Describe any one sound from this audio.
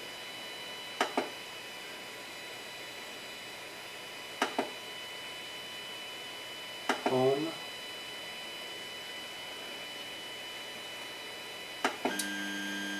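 A control knob clicks a few times.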